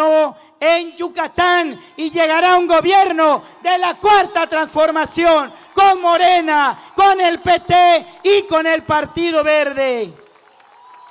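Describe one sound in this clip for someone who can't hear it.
A man speaks loudly and passionately into a microphone over loudspeakers.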